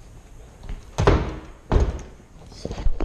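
A door latch clicks and a door bumps shut.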